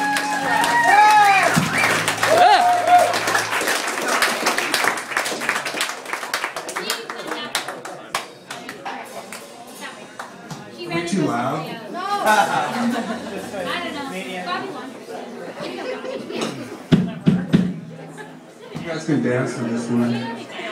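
Electric guitars and a bass play loud rock music live.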